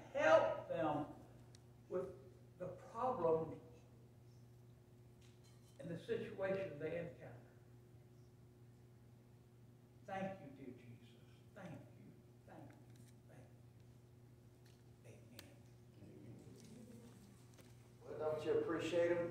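A middle-aged man speaks calmly through a microphone in an echoing hall, with pauses between phrases.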